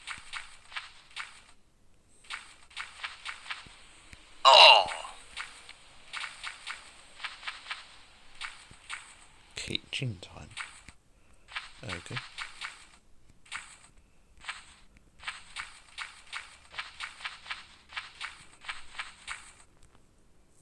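Footsteps crunch quickly and steadily on sand.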